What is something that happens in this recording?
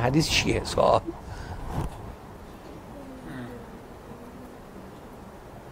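An elderly man laughs softly.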